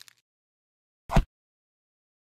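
A tomato is set down on a wooden board with a soft thud.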